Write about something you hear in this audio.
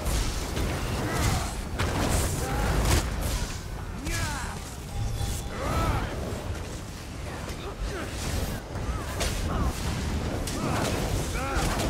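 Spell effects crackle and burst in a fantasy battle.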